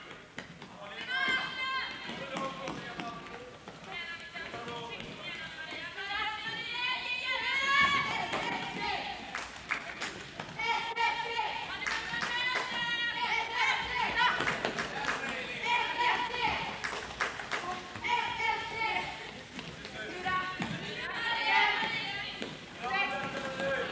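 Young women call out to each other across a large echoing sports hall.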